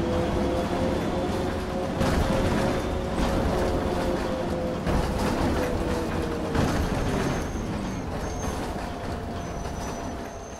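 A bus engine drones and winds down as the bus slows to a stop.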